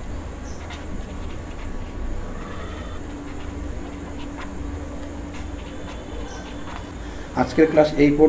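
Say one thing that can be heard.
A pen scratches softly on paper as it writes.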